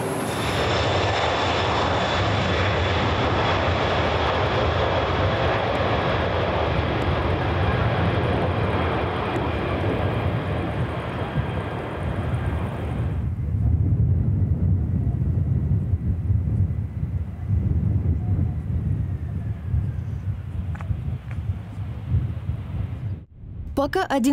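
A jet airliner's engines roar loudly.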